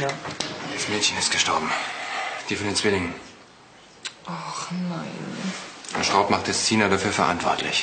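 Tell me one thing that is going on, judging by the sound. A man speaks in a low, firm voice nearby.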